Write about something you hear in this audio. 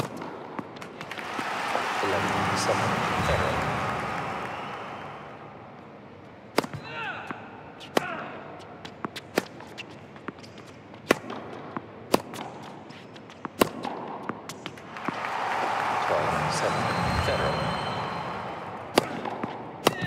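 A crowd applauds and cheers in an arena.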